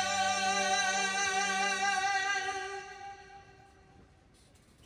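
A man sings a long, wavering note through a microphone.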